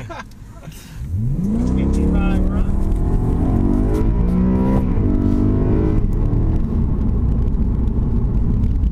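A car engine revs hard and roars as the car accelerates.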